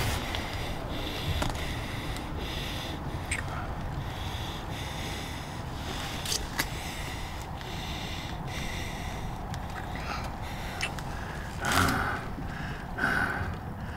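A young woman breathes heavily, close by.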